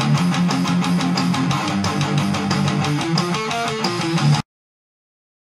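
A heavily distorted electric guitar plays loud riffs.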